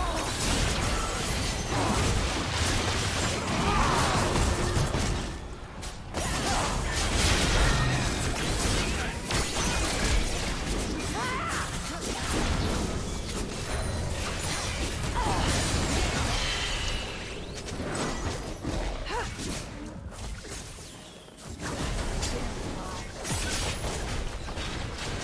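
Game spells and attacks crackle and clash in quick bursts.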